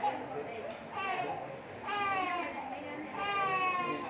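A baby cries loudly in high wails.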